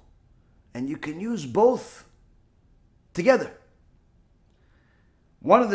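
A middle-aged man speaks with animation, close to a microphone, in short bursts with pauses.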